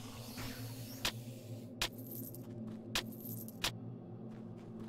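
Small items clink and rattle as they are picked up one after another.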